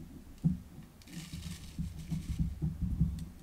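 Water trickles as it is poured.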